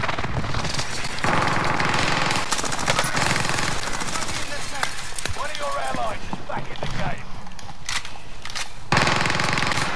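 A submachine gun fires in bursts.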